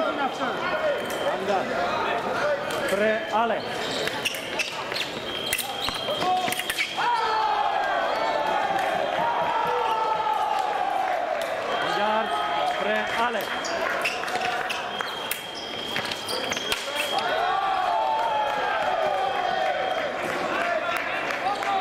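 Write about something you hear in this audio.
Fencers' shoes squeak sharply on a hard floor.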